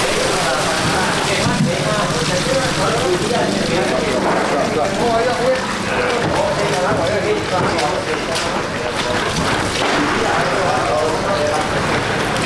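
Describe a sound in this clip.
Fish slap and rattle as they are sorted into plastic crates.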